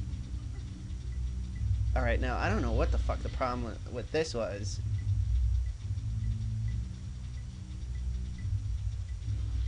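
Soft sparkling chimes tinkle at an even pace.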